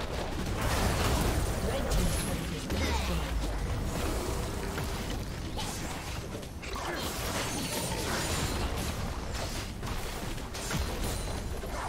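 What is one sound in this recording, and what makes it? Game weapons clash and strike in quick bursts.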